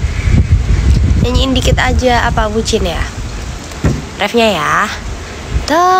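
A young woman sings close to a microphone.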